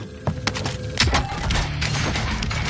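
Rapid gunshots ring out.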